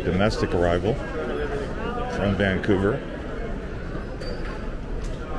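Suitcase wheels roll across a hard floor.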